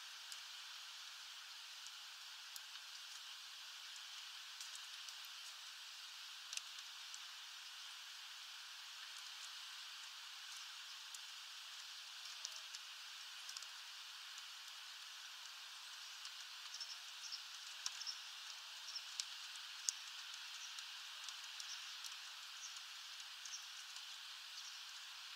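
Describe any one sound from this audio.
A small bird pecks and cracks seeds with sharp little clicks.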